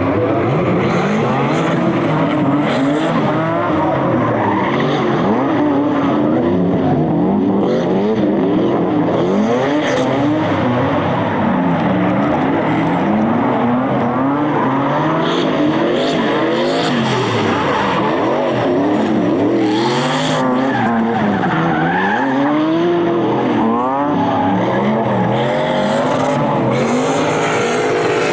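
Racing car engines roar and rev up and down.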